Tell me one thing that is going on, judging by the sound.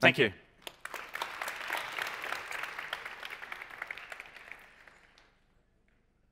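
An audience applauds in a large hall, then dies down.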